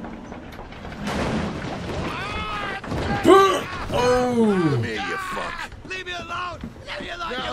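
A man shouts angrily up close.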